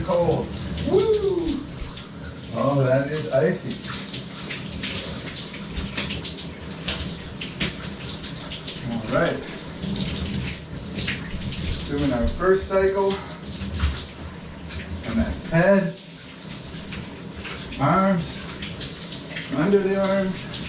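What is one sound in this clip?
A person sings loosely in short phrases.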